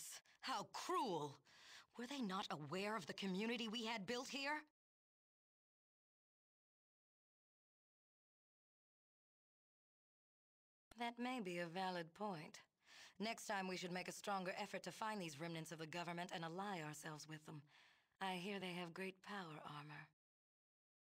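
A woman speaks calmly and clearly, close to a microphone.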